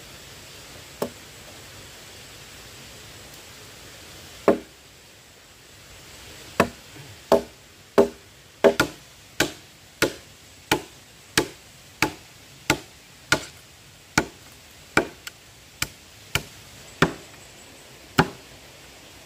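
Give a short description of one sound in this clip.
A machete chops into wood with sharp, regular blows.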